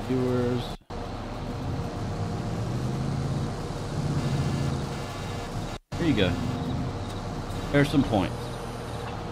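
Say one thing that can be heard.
A man speaks in short bursts into a close microphone.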